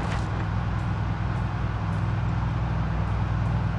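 A van engine hums steadily as it drives along.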